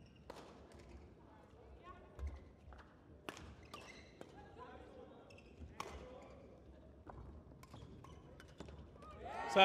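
Rackets strike a shuttlecock in a quick rally, with sharp pops echoing in a large hall.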